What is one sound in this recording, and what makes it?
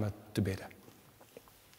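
A man speaks calmly in a reverberant room.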